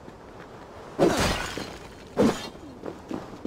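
Clay pots smash and shatter with a loud crash.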